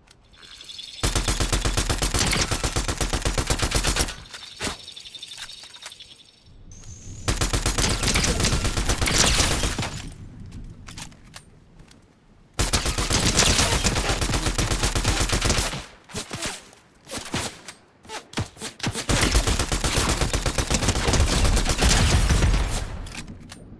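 A rifle fires in rapid, loud bursts of shots.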